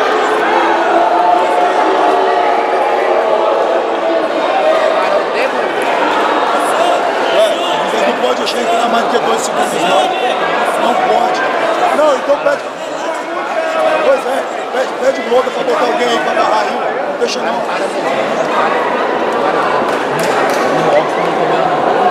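A crowd chatters and cheers loudly in a large echoing hall.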